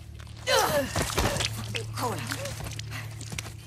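A man groans and cries out in pain close by.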